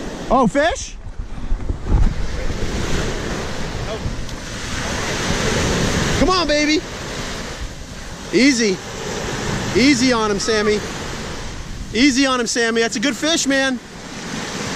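Waves break and wash up onto the shore.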